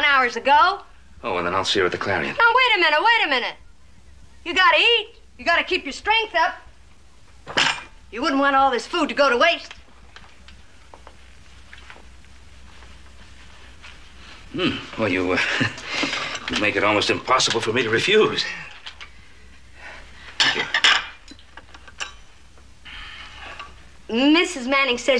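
An elderly woman speaks in an animated, pleading voice.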